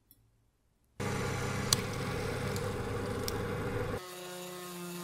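A drill whirs steadily as it bores into metal.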